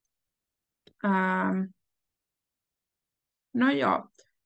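A young woman speaks slowly and clearly over an online call, with long pauses.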